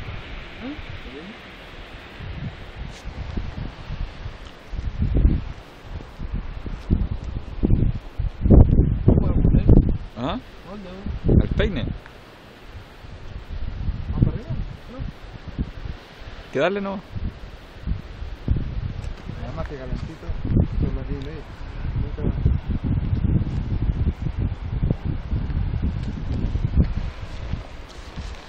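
Wind buffets a microphone outdoors.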